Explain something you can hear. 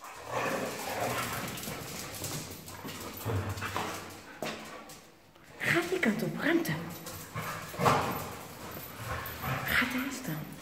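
Dogs growl and snarl playfully close by.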